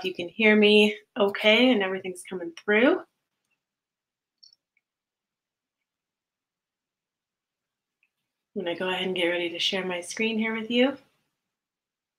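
A woman speaks calmly and close up through a computer microphone, with pauses.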